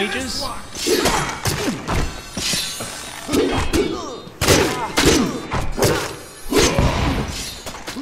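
Swords clash and slash in a fight.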